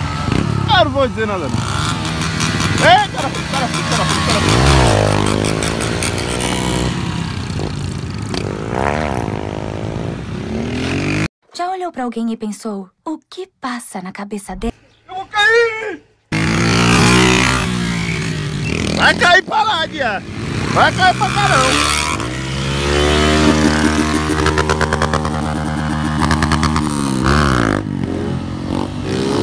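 Motorcycle engines rev loudly and roar past.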